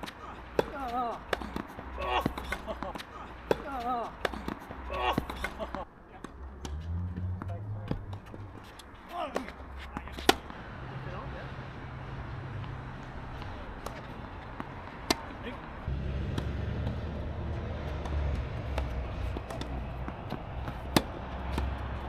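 A tennis ball is struck with rackets in sharp pops.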